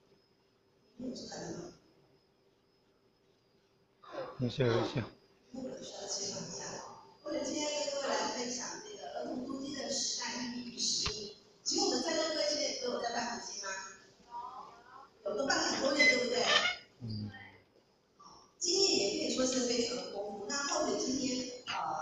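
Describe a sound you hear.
A woman lectures through a loudspeaker in a large echoing hall.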